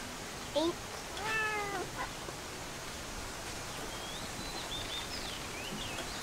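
A kitten meows close by.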